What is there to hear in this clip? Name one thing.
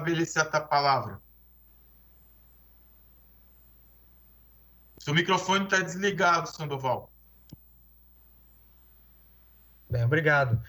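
A middle-aged man speaks calmly into a microphone, heard as if over an online call, with pauses.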